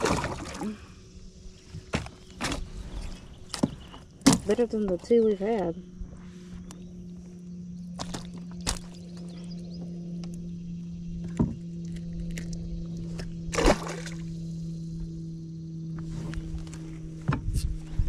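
Hands knock and rustle against plastic gear.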